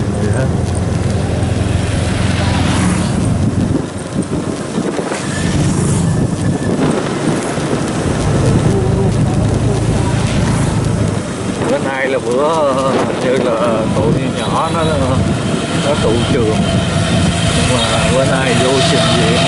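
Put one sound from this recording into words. Wind rushes past while riding outdoors.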